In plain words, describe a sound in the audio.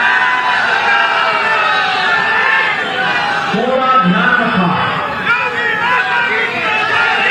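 A man speaks with animation into a microphone over loudspeakers.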